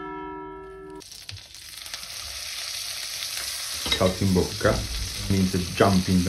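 Hot fat sizzles as it pours from a frying pan.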